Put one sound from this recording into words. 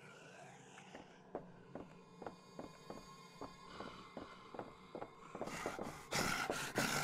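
Footsteps thump on wooden planks.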